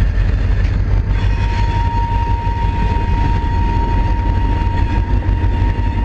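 Train wheels squeal with a steady high whine.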